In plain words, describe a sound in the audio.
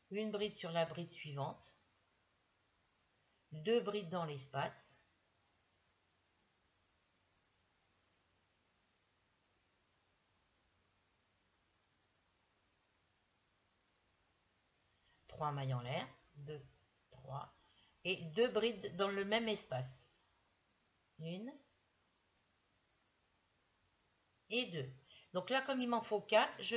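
An older woman speaks calmly and closely, explaining as she goes.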